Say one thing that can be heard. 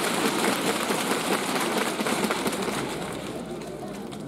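Several people clap their hands together.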